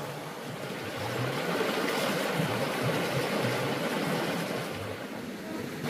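Water splashes around a woman wading through a stream.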